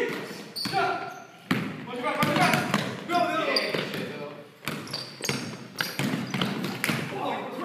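A basketball bounces on a wooden floor, echoing in a large hall.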